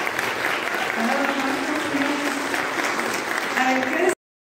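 A man sings out loudly in a large echoing hall.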